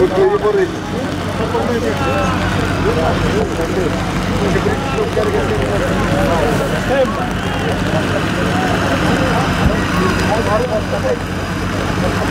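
A large crowd of men shouts and chatters in the distance outdoors.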